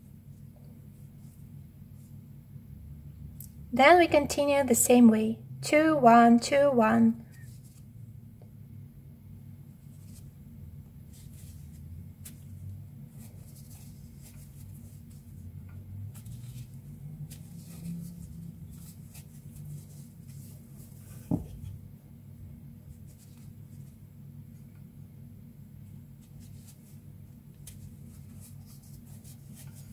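Soft fabric yarn rustles and scrapes as a crochet hook pulls it through stitches.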